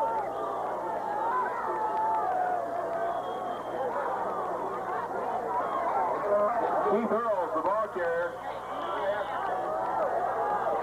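A crowd talks and shouts outdoors.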